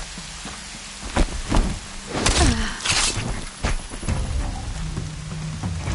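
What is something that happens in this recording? Heavy blows thud and clash in a fight.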